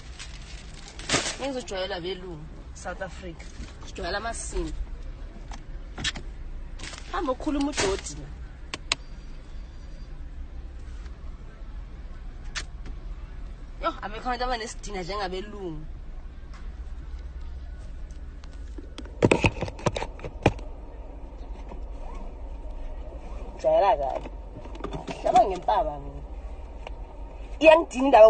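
A young woman talks casually and close by, in bursts with pauses.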